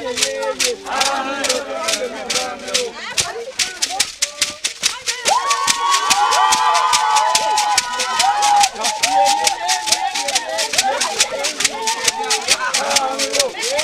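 A crowd of women sing together loudly outdoors.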